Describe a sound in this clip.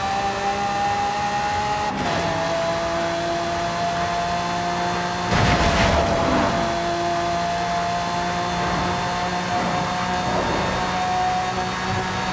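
Wind rushes past a fast-moving car.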